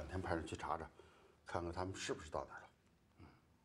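A middle-aged man talks on a phone close by.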